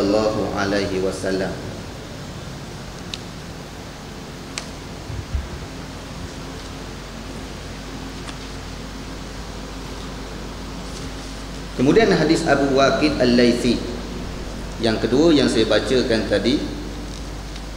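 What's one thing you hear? A young man speaks calmly into a microphone, heard through a loudspeaker.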